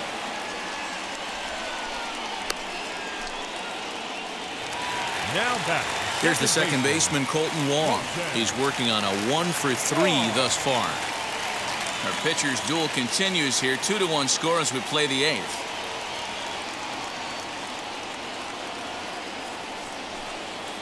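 A large crowd murmurs and cheers steadily in a stadium.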